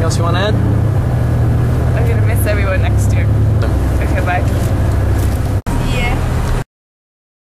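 A young woman talks and laughs softly close by.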